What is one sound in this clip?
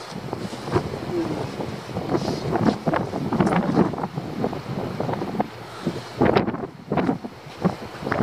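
Wind gusts and buffets outdoors by the sea.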